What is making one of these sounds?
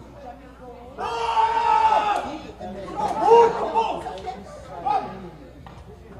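A crowd of people cheers and shouts outdoors.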